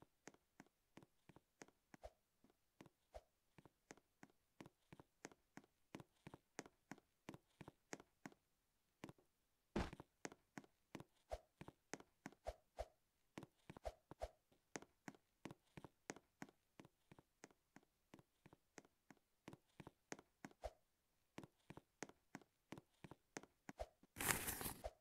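Quick footsteps patter steadily.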